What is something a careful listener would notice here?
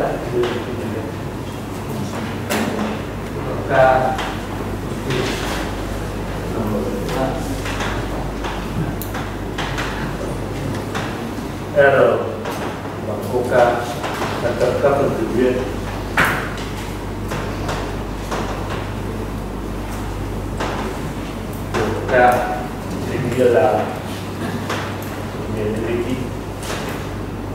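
Chalk taps and scratches on a chalkboard.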